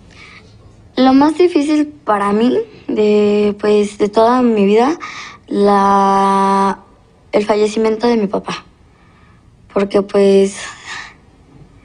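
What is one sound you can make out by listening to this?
A young girl speaks emotionally, close by.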